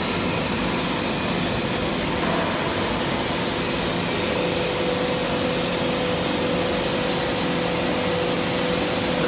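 Heavy industrial machinery hums and rumbles loudly.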